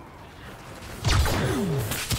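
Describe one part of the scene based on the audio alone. Laser blasters fire with sharp zaps and falling whines.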